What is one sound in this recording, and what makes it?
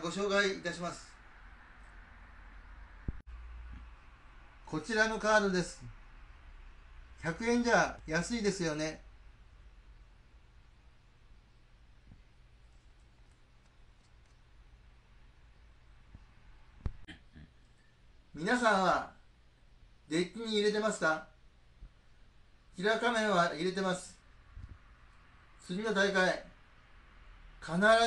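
A middle-aged man speaks close to the microphone in short bursts.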